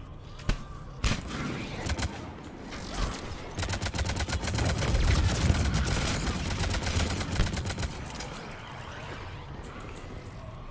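Rifle shots crack and echo.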